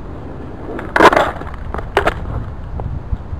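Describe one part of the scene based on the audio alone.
A skateboard clatters and knocks against concrete.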